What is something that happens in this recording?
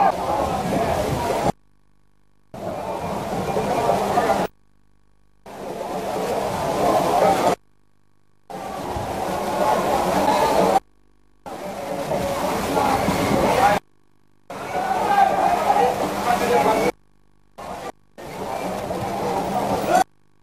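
A crowd cheers and chatters across a large open stadium.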